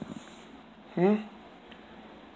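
A cat meows close by.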